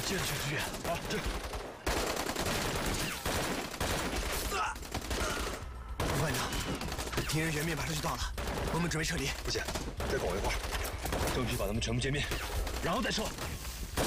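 A young man speaks urgently and close.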